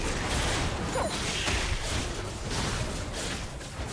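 Magic spells whoosh and crackle in a fight between game characters.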